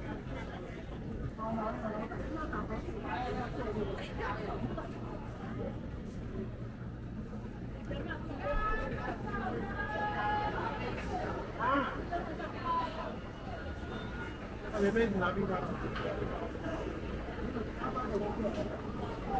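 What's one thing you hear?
A busy crowd of men and women murmurs and chatters all around outdoors.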